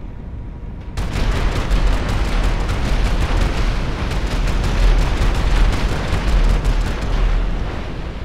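A cannon fires in a rapid burst.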